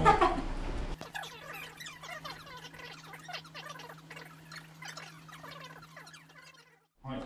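Voices chatter quickly at a sped-up pace.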